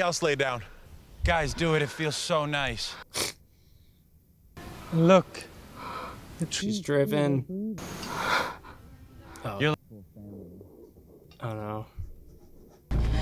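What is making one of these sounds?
A young man talks casually and close by, heard through a microphone.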